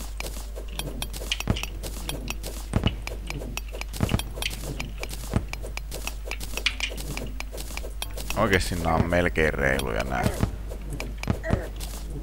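A pickaxe chips at rock in quick, repeated clicks.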